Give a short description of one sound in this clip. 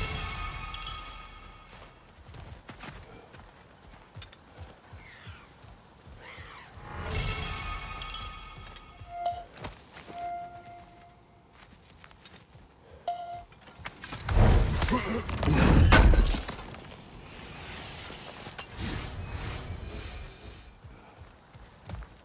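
Heavy footsteps tread on stone.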